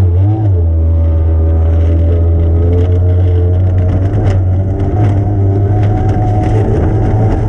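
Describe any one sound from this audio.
Water spray slaps and hisses against the boat's hull and windows.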